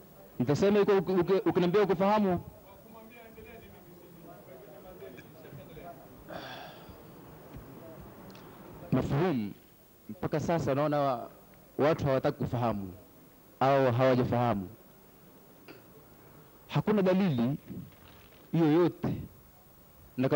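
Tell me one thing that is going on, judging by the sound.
A man speaks into a microphone in short bursts, with pauses.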